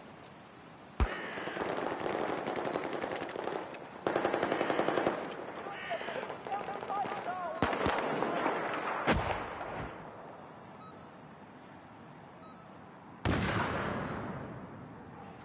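A rifle fires loud, sharp shots that echo away.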